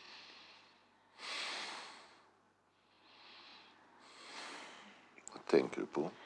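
A person breathes softly, close by.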